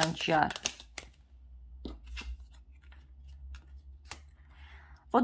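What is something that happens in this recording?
Playing cards slap softly onto a wooden table.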